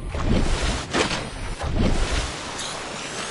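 Water splashes and churns loudly.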